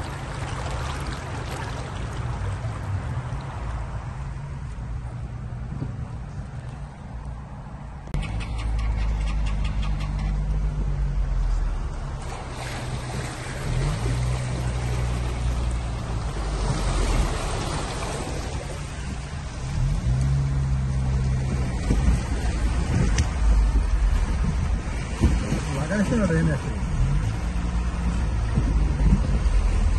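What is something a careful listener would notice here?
Water splashes and swishes under car tyres.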